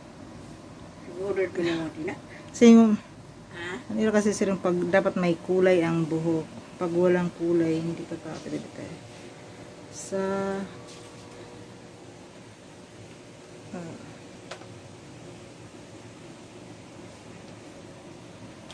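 Fingers rustle through a woman's hair.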